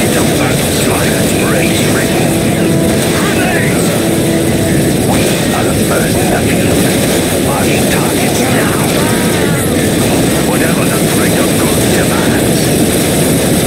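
Explosions rumble and boom.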